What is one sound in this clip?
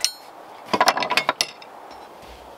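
Metal tools clink and clatter on a wooden shelf.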